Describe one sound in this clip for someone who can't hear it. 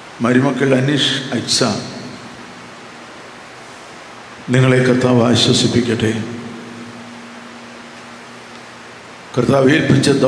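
An elderly man speaks slowly and solemnly through a microphone in an echoing room.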